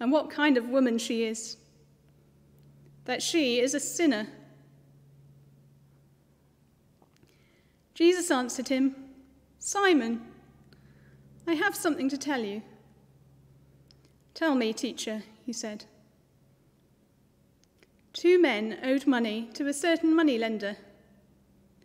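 A woman reads aloud calmly and clearly into a microphone, with pauses between phrases.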